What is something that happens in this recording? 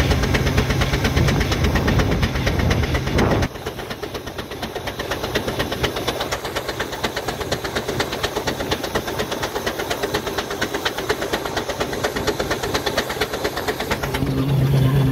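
A steam locomotive chuffs steadily and rhythmically.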